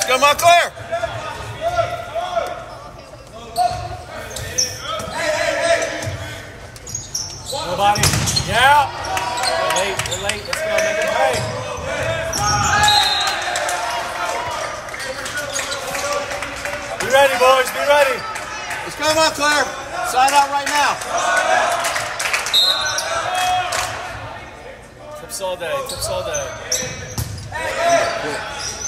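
Young players shout and call to each other in an echoing gym.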